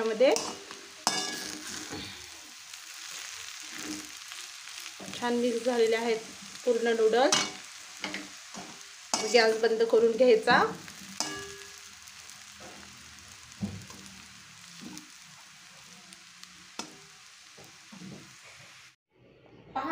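A metal spatula scrapes and clatters in a wok, tossing noodles.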